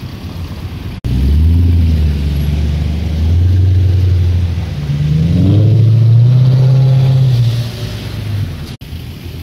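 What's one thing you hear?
A sports car engine roars loudly as the car pulls away, its pitch rising and falling.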